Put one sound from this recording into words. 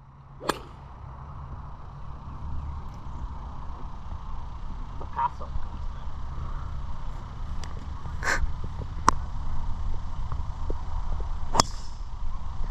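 A golf driver strikes a ball off a tee with a sharp crack.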